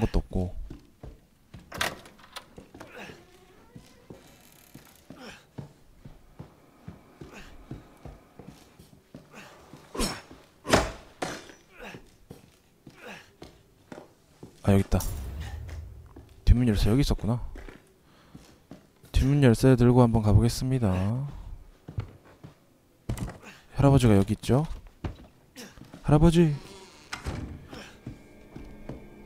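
Footsteps thud on a creaking wooden floor.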